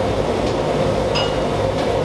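A metal ladle clinks against a steel pot.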